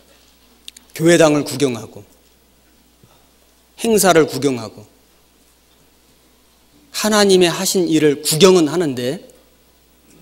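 A middle-aged man speaks slowly and deliberately into a microphone, with pauses between phrases.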